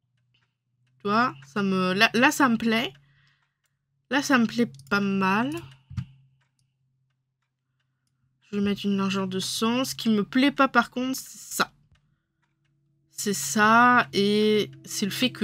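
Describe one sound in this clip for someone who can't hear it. A woman speaks calmly and close to a microphone, in short bursts with pauses.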